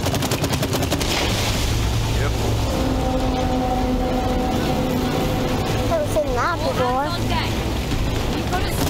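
A jet of water bursts up with a roaring hiss.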